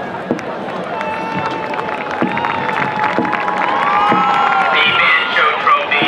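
A marching band plays brass and woodwind instruments outdoors.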